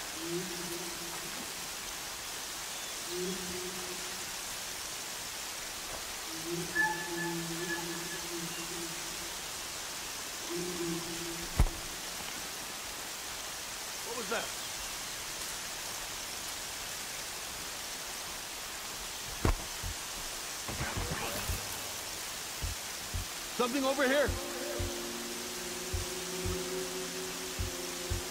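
Wind blows steadily through tall grass.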